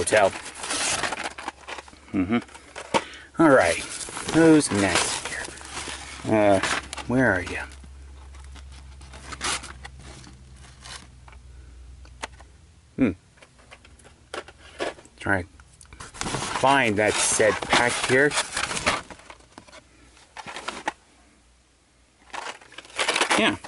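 A fabric bag rustles and flaps as it is handled close by.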